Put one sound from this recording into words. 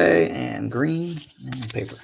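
Trading cards flick and rustle as they are shuffled through by hand.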